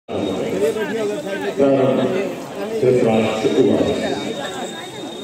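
A large crowd of men and women talks and murmurs in a big echoing hall.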